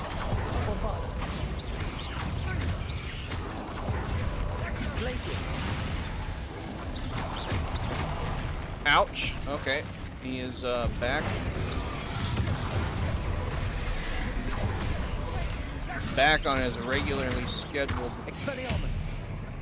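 Magic blasts whoosh and crackle during a fight.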